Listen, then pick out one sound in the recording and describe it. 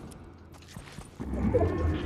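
Footsteps thud across grass.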